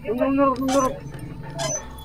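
A metal valve wheel squeaks as it is turned.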